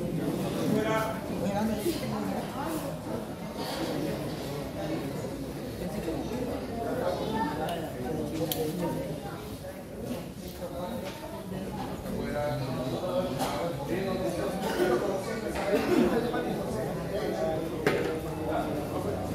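Several men talk loudly in a large echoing gym.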